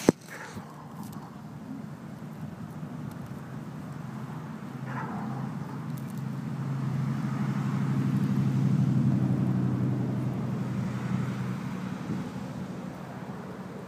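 A car drives past on a nearby road, swelling and fading.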